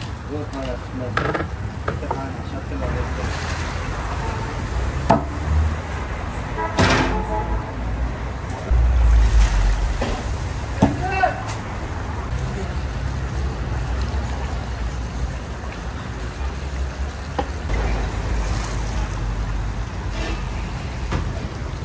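Oil and broth bubble and sizzle loudly in a large pot.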